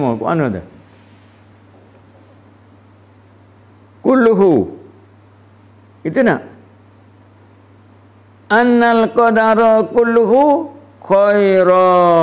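An elderly man speaks close to a microphone in a slow, drawn-out chant, with long pauses.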